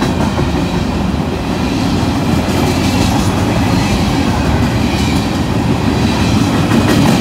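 Freight wagons rumble and clatter loudly along the rails close by.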